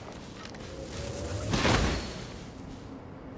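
A fiery explosion booms and crackles.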